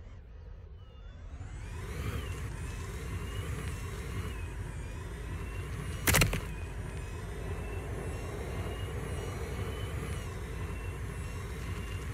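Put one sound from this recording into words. A car engine revs up and roars at high speed.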